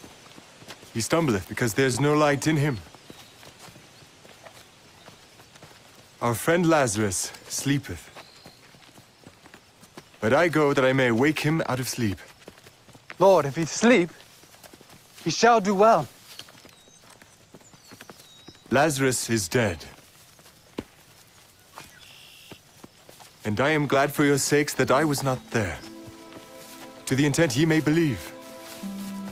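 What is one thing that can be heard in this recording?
A man speaks calmly in short, spaced phrases.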